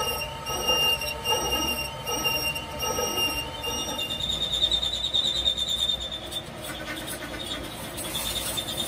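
A metal lathe hums as it spins.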